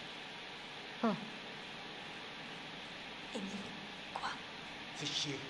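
A young woman gasps softly.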